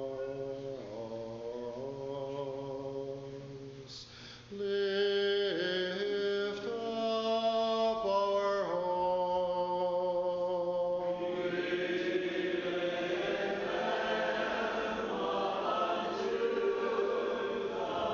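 A congregation of men and women sings a slow chant in a large echoing hall.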